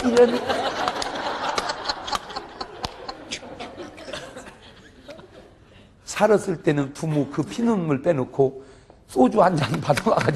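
A middle-aged man preaches with animation into a microphone, heard through loudspeakers in a large room.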